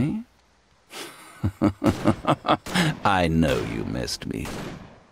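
Weapon blows and magic blasts crash in a fight.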